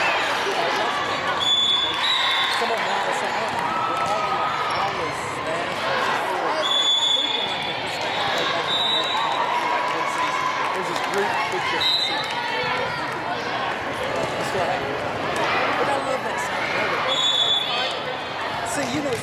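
Voices of a crowd of girls chatter and call out, echoing in a large hall.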